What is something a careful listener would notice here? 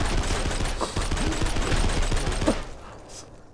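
Gunshots fire rapidly.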